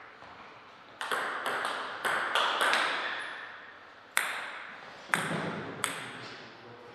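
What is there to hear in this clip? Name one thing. Paddles hit a table tennis ball back and forth in a quick rally.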